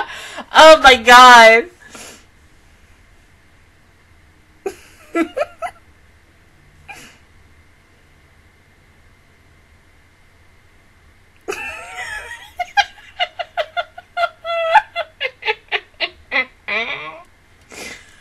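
A young woman laughs loudly and close into a microphone.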